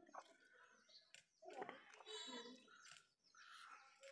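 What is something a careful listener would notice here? Raw fish flesh squelches as gloved hands pull it apart.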